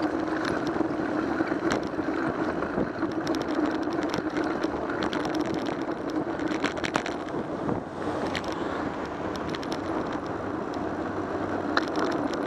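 A vehicle drives steadily along a street, its engine and tyres rumbling.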